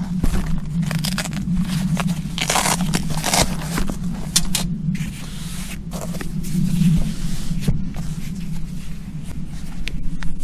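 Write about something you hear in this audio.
A padded cushion rustles and thumps as hands unfold it.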